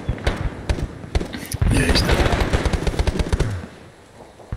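Rapid gunshots fire from a rifle close by.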